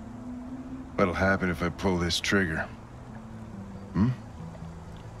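An older man speaks in a low, gruff voice.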